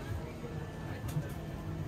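A metal ladle clinks against a metal pot.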